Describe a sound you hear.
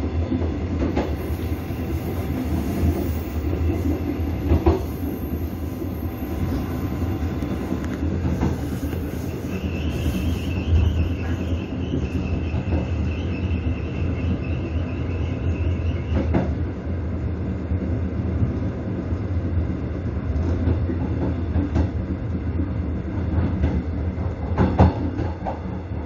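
Train wheels clack over rail joints and switches.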